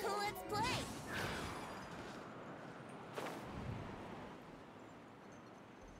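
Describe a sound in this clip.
Wind rushes past during a glide.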